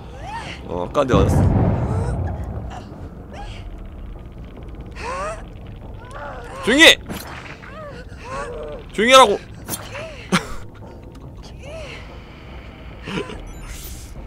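A man laughs loudly into a close microphone.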